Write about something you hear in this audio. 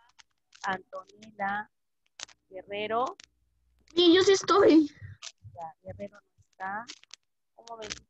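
A boy talks over an online call.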